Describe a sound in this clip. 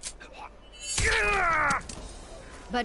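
A revolver fires a loud shot.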